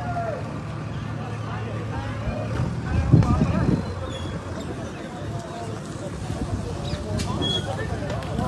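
Several men talk loudly and excitedly close by.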